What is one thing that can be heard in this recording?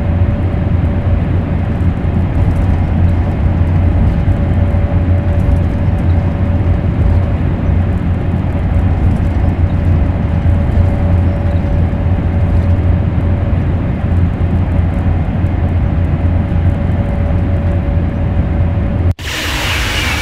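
A train hums and rumbles steadily from inside the driver's cab.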